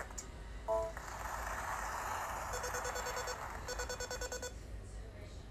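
Electronic game music plays from a small speaker.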